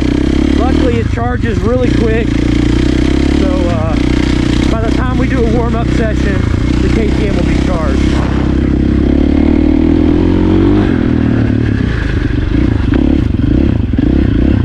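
A dirt bike engine roars close by, revving up and down.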